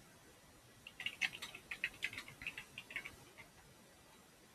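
A keyboard clatters with quick typing.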